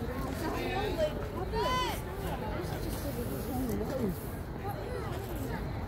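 Several people call out and chatter across an open outdoor field.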